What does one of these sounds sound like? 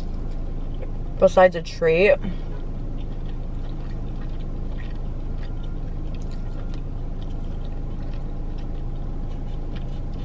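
A young woman chews food.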